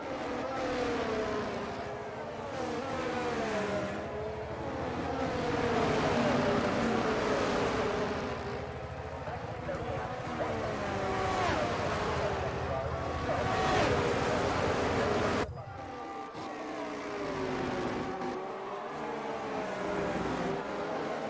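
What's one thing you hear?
Tyres hiss through water on a wet track.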